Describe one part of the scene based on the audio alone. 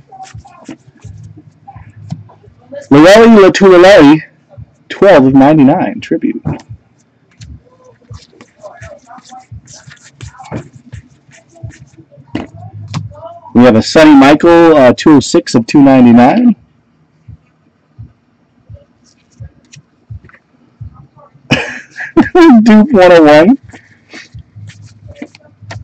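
Trading cards rustle and click as they are handled close by.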